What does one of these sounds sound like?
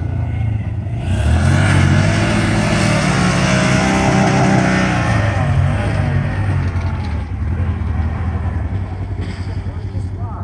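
An off-road buggy engine roars loudly as it accelerates up a dirt slope.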